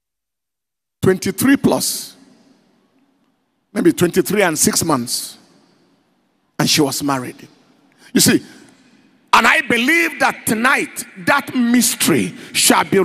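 A man preaches with animation through a microphone, his voice booming in a large room.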